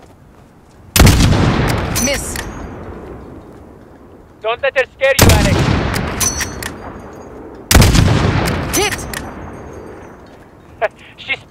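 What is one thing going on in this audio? A rifle fires loud single shots that echo and roll away into the distance.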